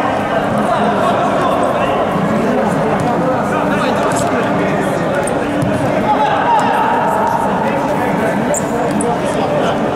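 Players shout to one another across an echoing hall.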